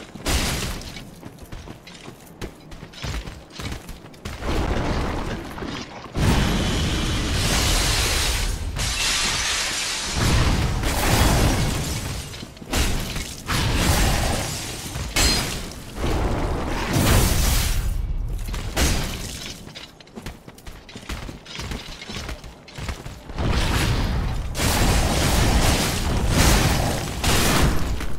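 A sword clangs and slashes in quick blows.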